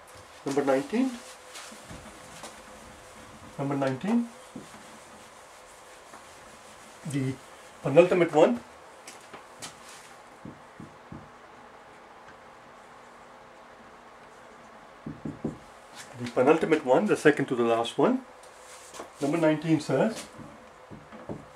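An elderly man speaks calmly and clearly, in short bursts with pauses.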